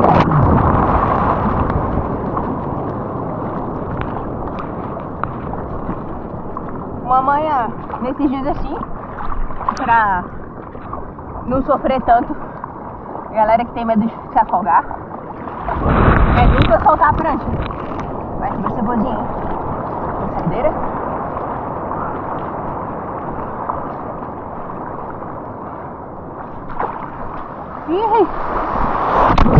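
Water sloshes and splashes close by, outdoors at sea.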